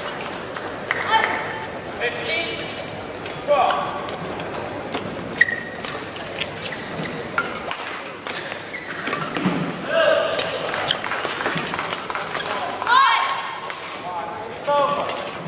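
Shoes squeak sharply on a hard court floor in a large echoing hall.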